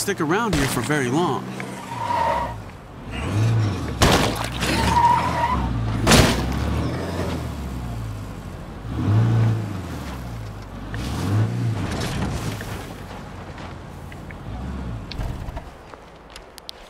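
A truck engine roars and revs as the vehicle drives.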